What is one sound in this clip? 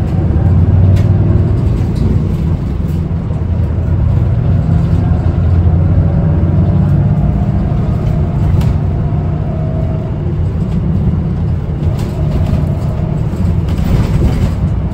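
A bus engine rumbles steadily from inside.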